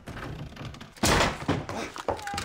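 A door bursts open with a loud bang.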